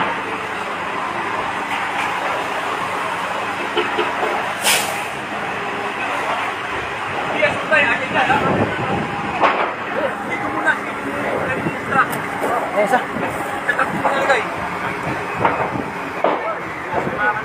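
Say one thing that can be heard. Fire truck engines idle with a steady rumble.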